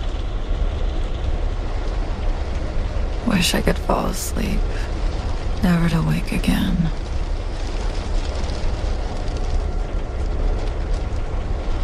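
A vehicle's engine hums low and steady.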